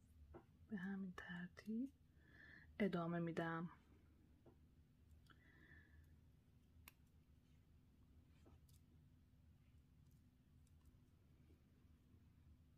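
Small beads click softly as a needle threads through them.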